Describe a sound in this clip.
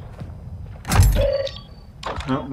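A heavy crate lid thuds open.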